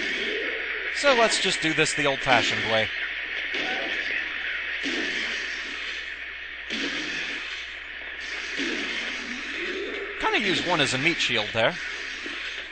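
A metal pipe strikes a body with heavy, repeated thuds.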